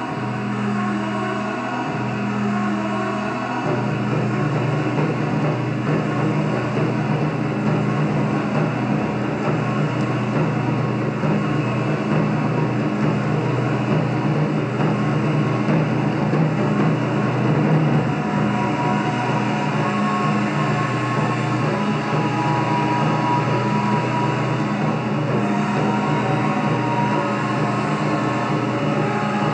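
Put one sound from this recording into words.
Large drums are struck in a steady rhythm through a loudspeaker.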